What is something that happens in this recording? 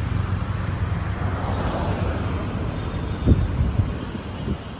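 A car passes close by.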